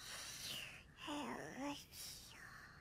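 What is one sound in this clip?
A young child murmurs sleepily.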